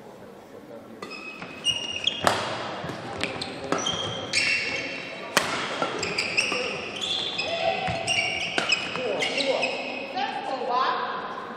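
Shuttlecocks are struck sharply with rackets in a large echoing hall.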